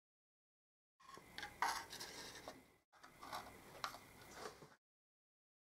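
A plastic cover clicks and scrapes as a hand fits it into place.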